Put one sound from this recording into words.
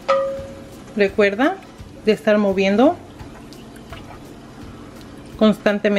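A wooden spoon stirs liquid in a metal pot.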